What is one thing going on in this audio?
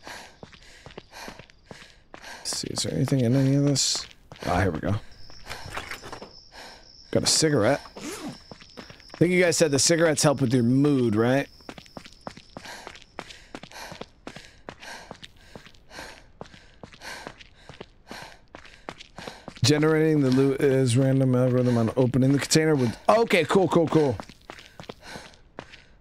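Footsteps run steadily on pavement.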